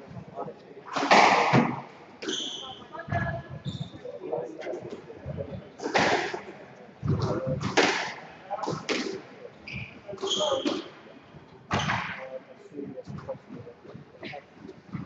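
A squash ball smacks sharply against walls in an echoing court.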